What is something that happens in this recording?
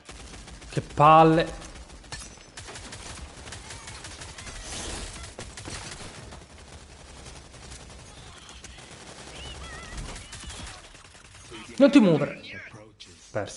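A young man shouts loudly into a close microphone.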